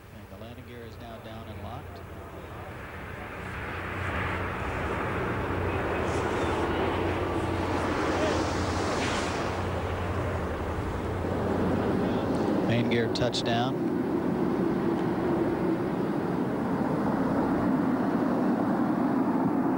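A landing spacecraft roars as it rolls down a runway.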